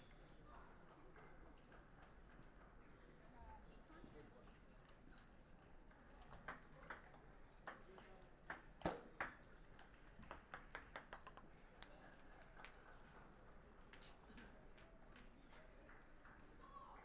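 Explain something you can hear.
A crowd murmurs faintly in a large hall.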